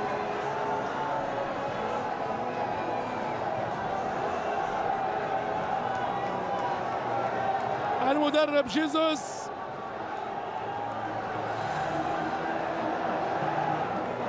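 A large crowd murmurs and chatters in an open stadium.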